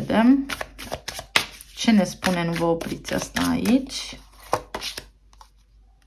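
Playing cards rustle and flick as they are shuffled by hand.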